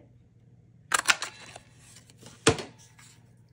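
A paper punch clicks sharply as it is pressed.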